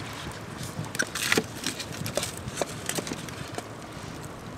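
Sticks knock against stone as they are pushed into a fire.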